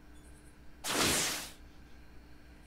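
A sharp whoosh rushes past.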